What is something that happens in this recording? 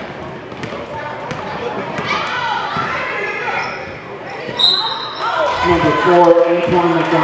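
A crowd of spectators cheers and shouts in an echoing gym.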